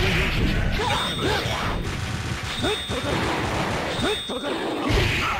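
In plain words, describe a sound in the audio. Upbeat electronic game music plays steadily.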